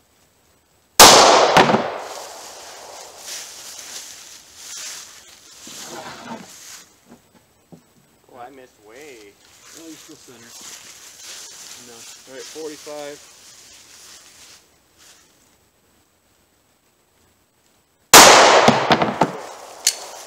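A pistol fires a loud shot that echoes outdoors.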